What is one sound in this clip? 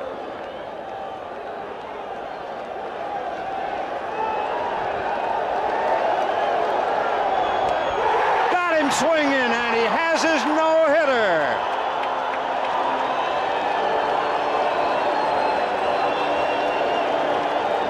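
A large stadium crowd cheers and roars, growing louder.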